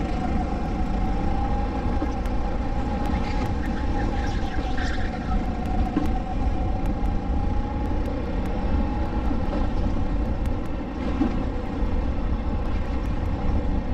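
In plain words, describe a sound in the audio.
Wind rushes past an open racing kart at speed.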